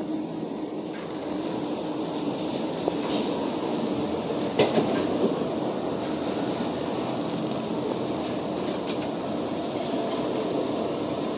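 A monorail train glides past close by with a rising whoosh and rumble.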